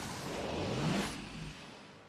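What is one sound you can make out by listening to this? A nitro boost whooshes loudly.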